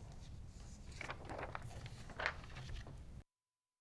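Paper sheets rustle and slide on a desk.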